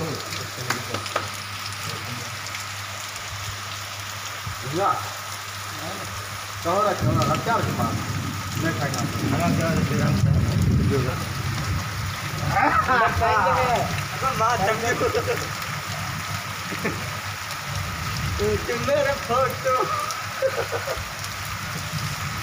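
Heavy rain pours down steadily outdoors.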